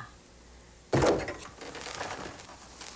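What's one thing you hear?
A door opens with a knock of its handle.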